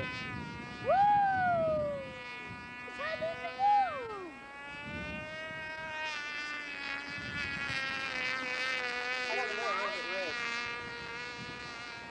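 A small propeller plane drones high overhead.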